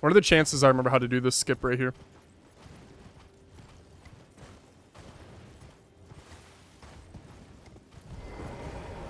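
Hooves thud steadily on snow and stone.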